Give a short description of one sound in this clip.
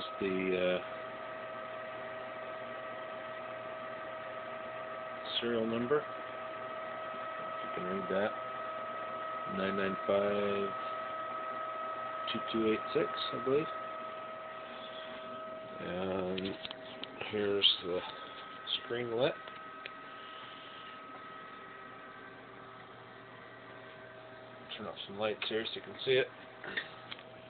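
An electronic device hums with a steady high tone.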